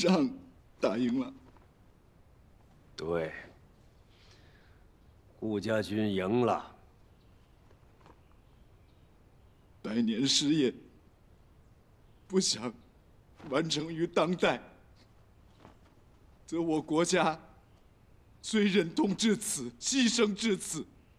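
A young man speaks with strong emotion, his voice breaking as if close to tears.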